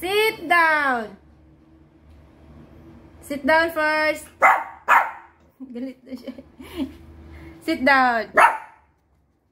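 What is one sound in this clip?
A small dog whines in high, rising and falling yelps close by.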